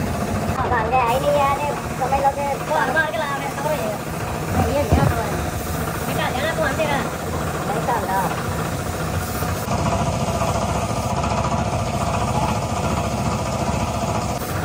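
A spray gun hisses steadily as it sprays paint.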